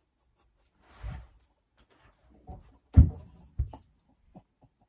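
Thumps and bumps sound close by.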